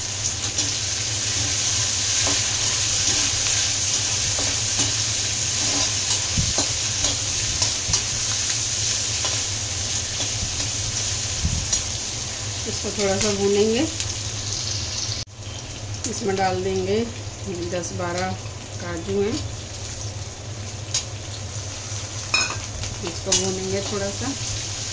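A metal spatula scrapes and taps against a metal pan.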